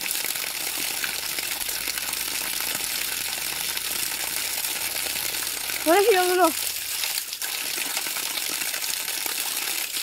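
Water pours and splashes steadily onto the ground.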